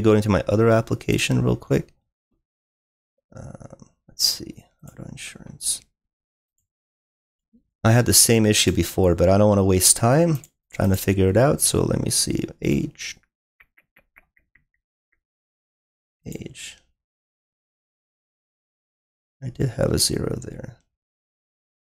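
A young man talks calmly and closely into a microphone, in bursts with pauses.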